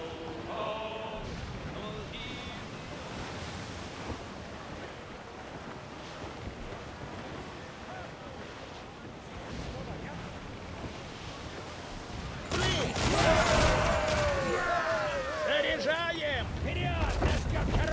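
Wind blows strongly outdoors.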